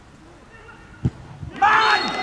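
A football is kicked hard with a sharp thud.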